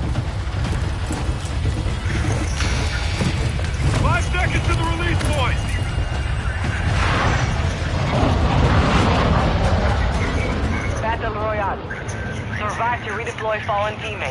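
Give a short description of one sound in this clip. Aircraft engines roar steadily.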